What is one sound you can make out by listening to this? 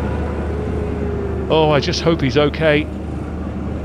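Motorcycle engines roar past at high speed.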